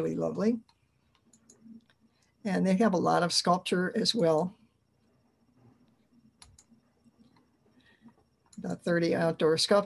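An elderly woman speaks calmly through an online call, pausing between phrases.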